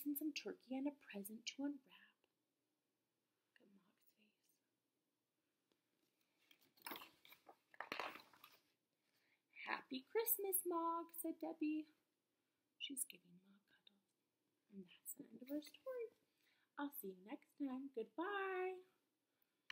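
A young woman reads aloud and talks with animation close to a microphone.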